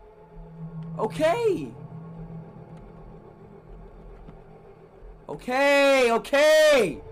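A young man shouts loudly through a microphone.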